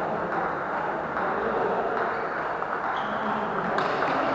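A table tennis ball clicks sharply off paddles and a table in a large echoing hall.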